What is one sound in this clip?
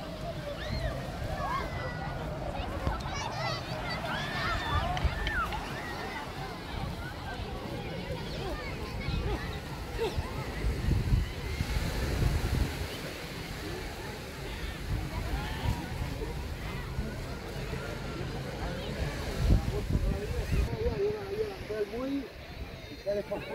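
Many people chatter in a crowd across a busy beach outdoors.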